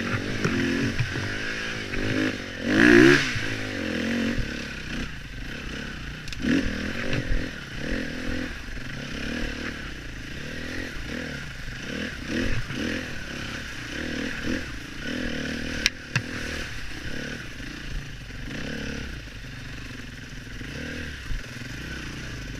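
A dirt bike engine revs and buzzes close by.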